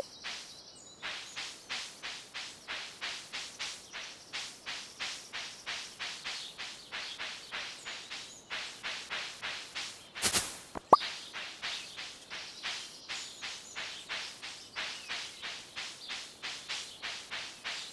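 Soft footsteps patter quickly and steadily over grass.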